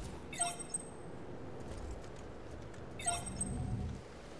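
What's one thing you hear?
A short bright chime rings twice.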